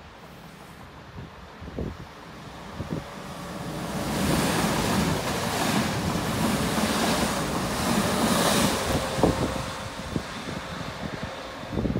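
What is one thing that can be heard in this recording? An electric train rolls into a station with a rising rumble and then passes close by.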